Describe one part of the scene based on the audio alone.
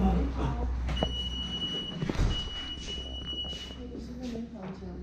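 A security gate beeps steadily.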